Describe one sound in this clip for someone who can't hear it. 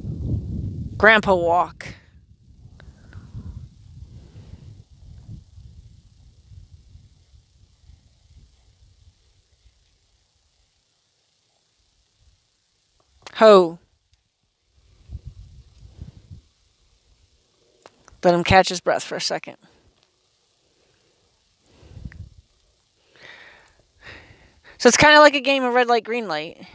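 A woman speaks up outdoors from a short distance, in short bursts.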